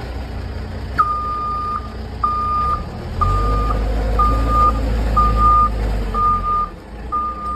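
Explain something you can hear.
A reversing alarm beeps steadily at an even pace.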